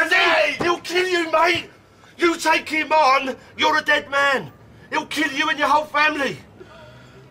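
A man speaks urgently and with emotion, close by.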